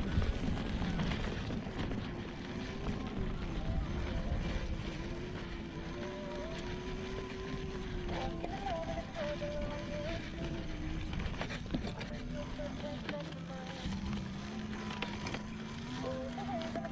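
An electric motor whines, rising and falling in pitch.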